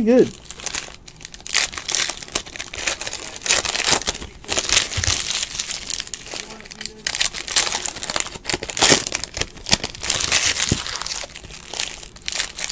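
Foil wrappers crinkle and rustle close by as packs are torn open.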